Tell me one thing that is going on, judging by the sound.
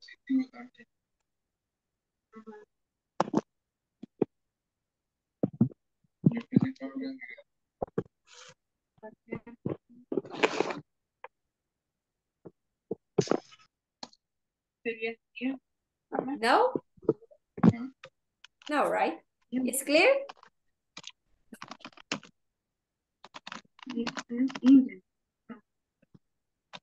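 A young woman speaks with animation over an online call, in short bursts.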